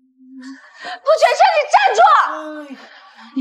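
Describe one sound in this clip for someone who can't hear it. A young woman shouts out tearfully.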